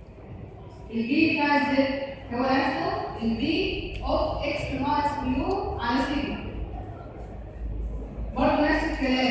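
A woman speaks calmly through a microphone.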